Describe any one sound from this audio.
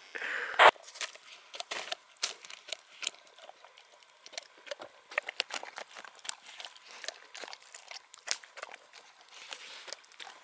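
A dog crunches dry food up close.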